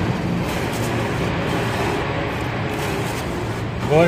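Paper banknotes rustle in a hand.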